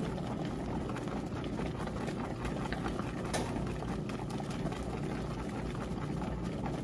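A washing machine agitator churns and sloshes soapy water.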